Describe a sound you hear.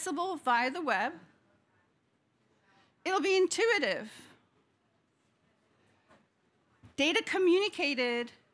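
A woman speaks through a microphone, presenting with pauses.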